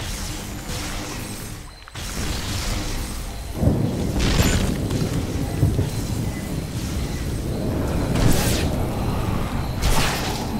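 A man talks into a microphone close by.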